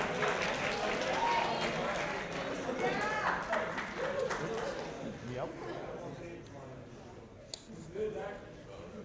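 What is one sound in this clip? A crowd of men and women cheers and whoops loudly in an echoing room, then quiets down.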